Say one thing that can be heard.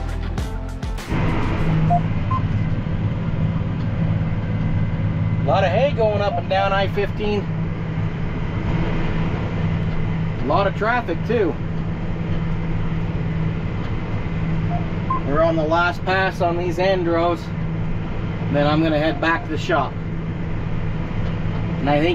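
A tractor engine drones steadily, heard from inside the cab.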